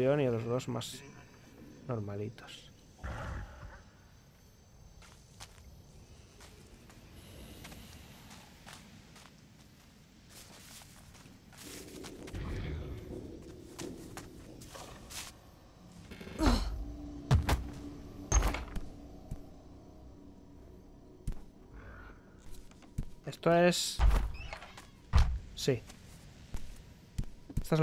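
Footsteps tread on soft ground and wooden boards.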